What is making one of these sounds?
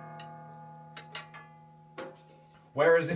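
Light taps sound on a drum.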